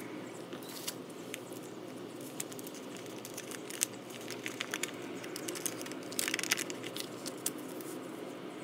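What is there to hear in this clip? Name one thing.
Folded paper crinkles as it is unfolded.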